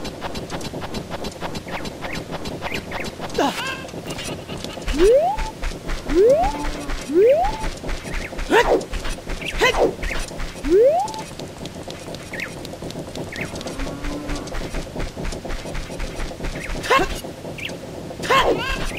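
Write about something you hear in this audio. Footsteps patter quickly as a game character runs.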